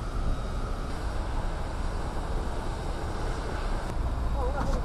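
A large fire roars with a steady low rumble.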